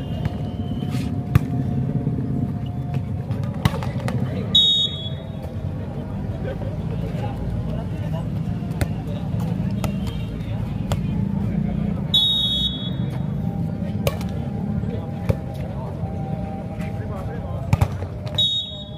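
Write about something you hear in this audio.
A ball is kicked with sharp thumps.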